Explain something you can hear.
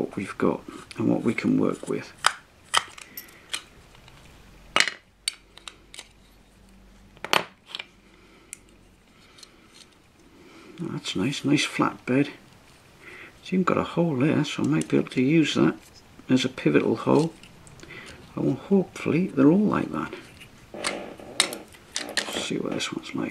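Small plastic parts click and tap as hands handle them.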